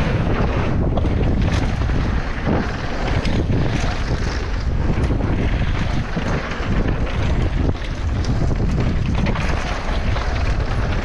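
Bicycle tyres crunch and rattle over a dirt trail.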